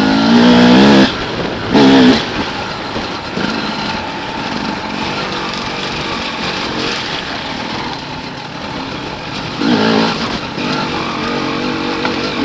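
Tyres splash and rumble over a muddy dirt track.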